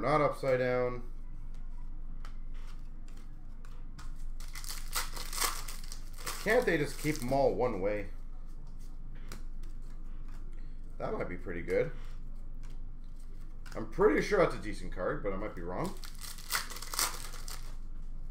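Cards rustle and click as they are handled.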